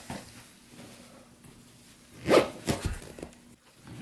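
A zipper on a suitcase is pulled shut.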